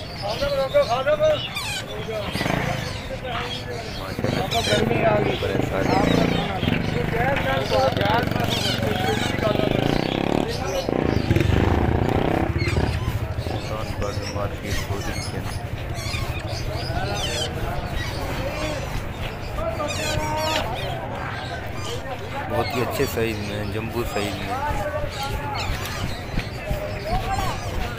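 Parrot chicks squawk and chirp loudly up close.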